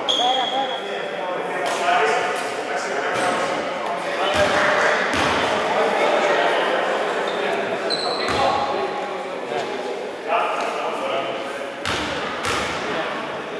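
Young players call out across the echoing hall.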